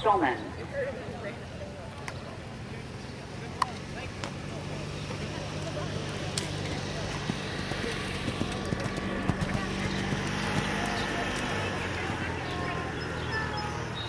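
A horse canters with hoofbeats thudding on sand.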